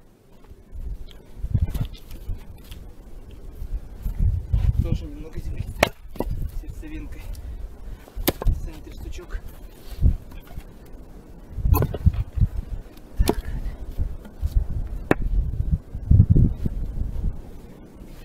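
Split logs thud onto the snow.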